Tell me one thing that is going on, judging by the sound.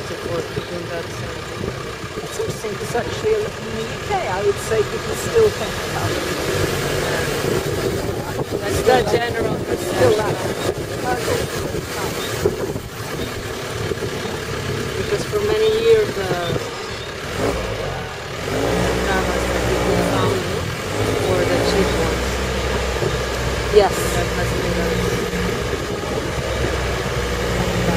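An engine hums steadily as a vehicle drives.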